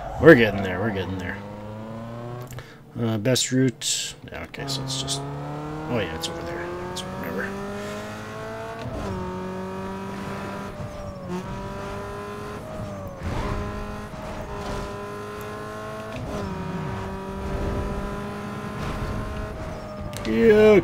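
A car engine revs hard and climbs through the gears.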